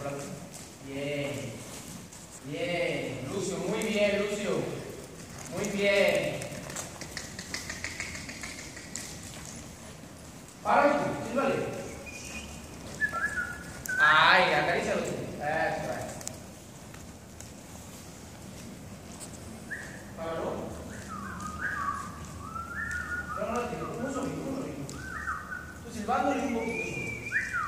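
A man speaks calmly, giving instructions in a large echoing hall.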